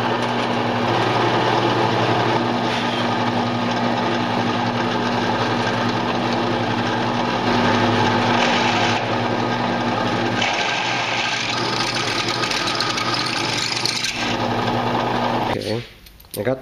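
A drill press whirs steadily as it bores into metal.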